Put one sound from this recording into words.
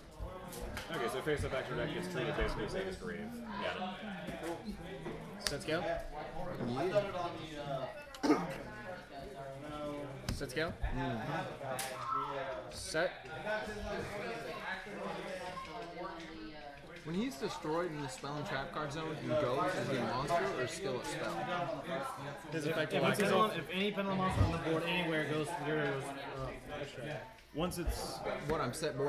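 Young men talk calmly close by.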